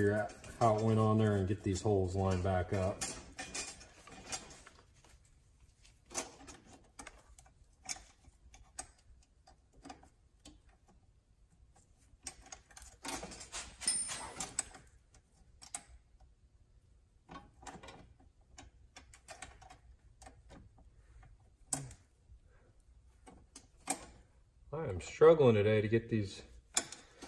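Metal parts click and clink as a hub is worked on by hand.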